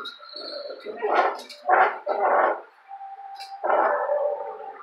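A dog barks loudly close by.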